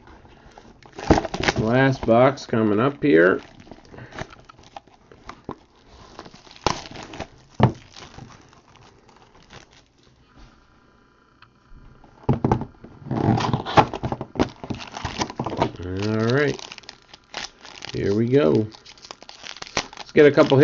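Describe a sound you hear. Plastic wrapping crinkles and rustles under fingers.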